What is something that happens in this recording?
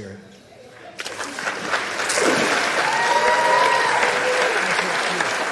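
Water splashes as a person is dipped under and lifted out.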